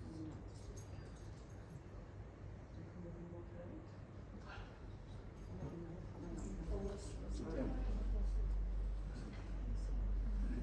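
Several men and women chat quietly in a large echoing hall.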